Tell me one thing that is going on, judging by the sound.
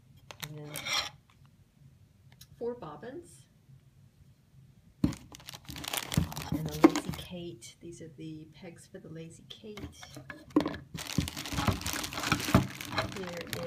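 Cardboard and plastic wrapping rustle as hands handle a package.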